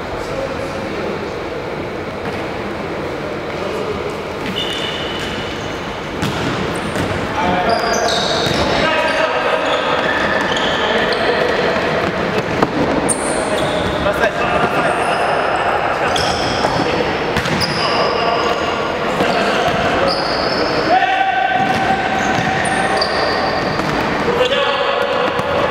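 Sneakers squeak sharply on a wooden floor in an echoing hall.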